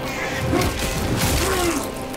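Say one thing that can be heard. A creature is torn apart with wet, crunching sounds.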